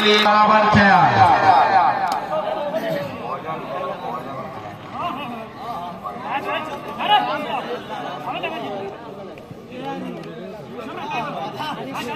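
Men shout and cheer loudly nearby.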